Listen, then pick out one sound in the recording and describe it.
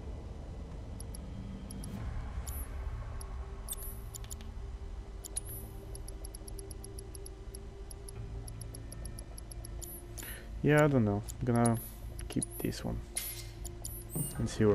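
Short electronic menu blips tick as selections change.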